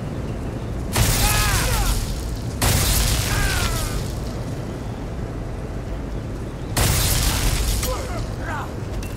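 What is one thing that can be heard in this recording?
Electric magic crackles and sizzles loudly in bursts.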